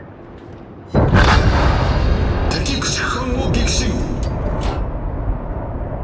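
Heavy ship guns fire with a loud, rolling boom.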